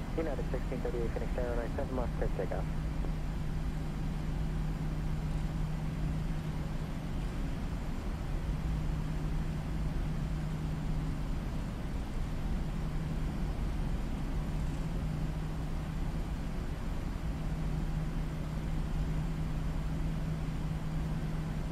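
Jet engines hum steadily while an airliner taxis.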